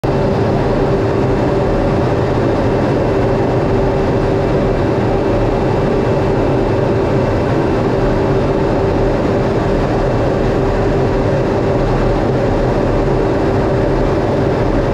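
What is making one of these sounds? A jet engine roars steadily and loudly from close by.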